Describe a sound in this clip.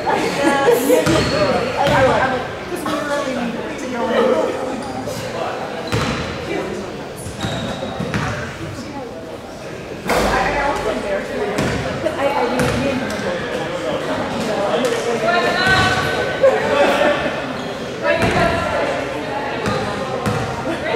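A basketball bounces with dull thuds on a wooden floor.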